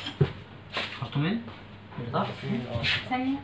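A young man speaks casually nearby.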